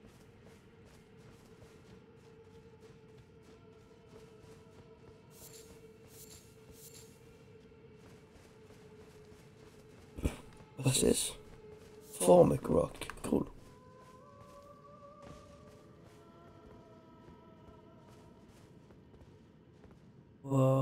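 Footsteps crunch on grass and stone.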